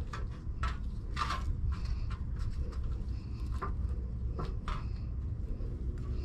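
A metal scraper scrapes across concrete.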